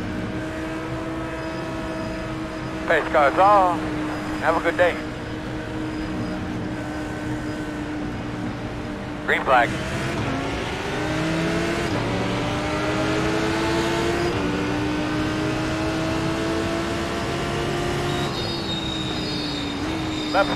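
A race car engine drones steadily, its pitch rising and falling with the gears.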